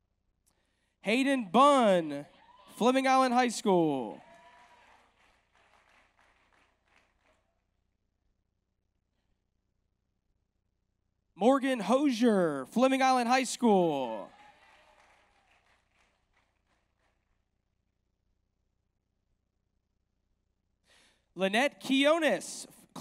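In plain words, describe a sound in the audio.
A woman announces over a loudspeaker in a large echoing hall.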